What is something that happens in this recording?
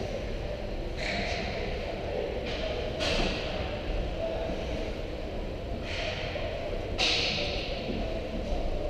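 Skates scrape on ice in a large echoing rink.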